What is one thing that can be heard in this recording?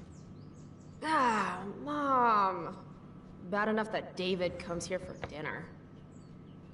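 A young woman speaks with exasperation, close by.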